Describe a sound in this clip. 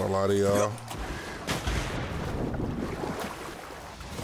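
Water splashes and gurgles as a swimmer dives under.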